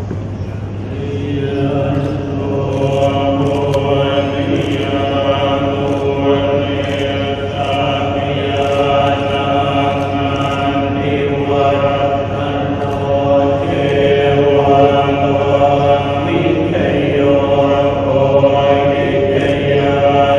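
Many men chant together in a steady, droning unison in an echoing hall.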